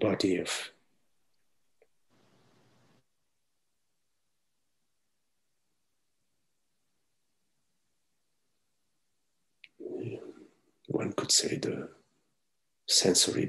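A man speaks calmly through an online call, with long pauses.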